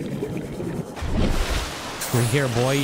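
Water splashes as a small submarine breaks the surface.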